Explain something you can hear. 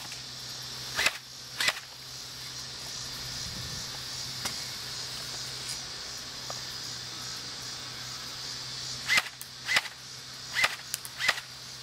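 A gun fires sharp shots outdoors.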